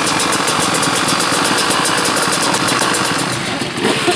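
A dirt bike engine revs up loudly.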